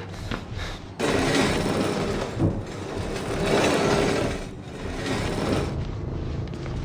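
A metal cage gate rattles and scrapes as it is pushed.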